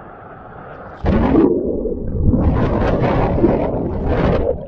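Water roars and rumbles, heard muffled from underwater.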